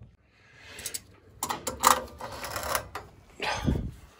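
Metal pliers clink against a pipe fitting.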